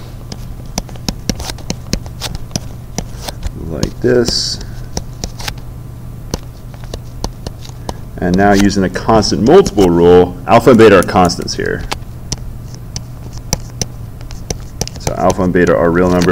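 A stylus taps and scrapes on a tablet.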